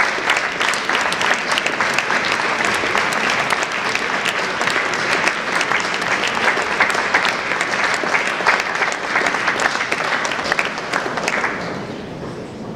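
An audience applauds loudly in a large echoing hall, then the clapping dies away.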